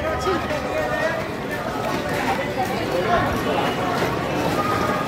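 Engines of vehicles hum along a busy street.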